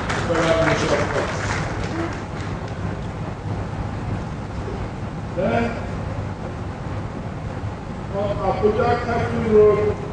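A man speaks formally into a microphone over loudspeakers, in a hall with some echo.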